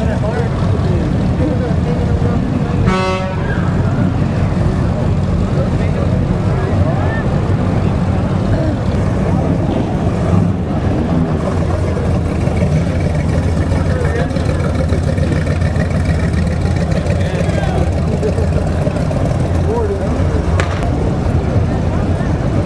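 Classic car engines rumble loudly as the cars cruise slowly past.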